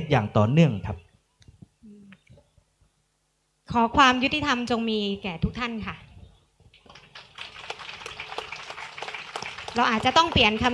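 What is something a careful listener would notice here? A woman speaks calmly into a microphone over loudspeakers.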